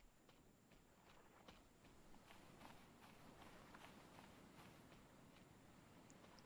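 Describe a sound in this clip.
Footsteps rustle through leafy bushes at a steady pace.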